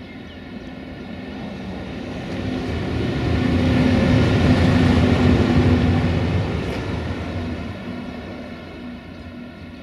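Steel wheels rumble and clatter over the rails.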